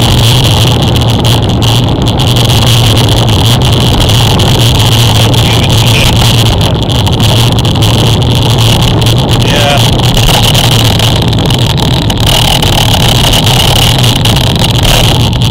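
Tyres roll steadily over a paved road.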